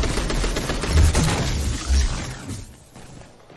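Gunshots fire in rapid bursts with loud booms.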